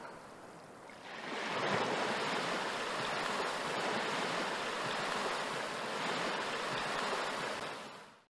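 Ocean waves roar steadily.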